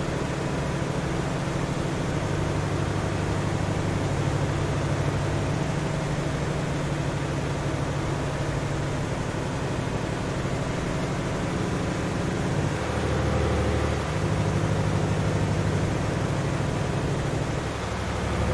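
A truck engine drones steadily at low pitch, shifting gears now and then.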